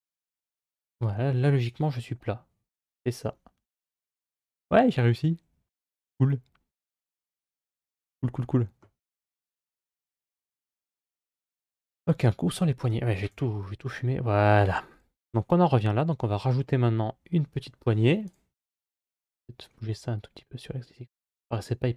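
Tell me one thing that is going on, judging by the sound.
A young man talks calmly and close to a microphone, in bursts with pauses.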